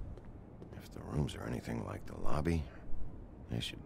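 A man speaks calmly and dryly.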